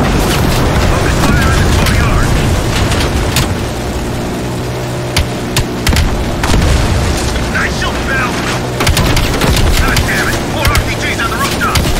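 A heavy machine gun fires in rapid bursts.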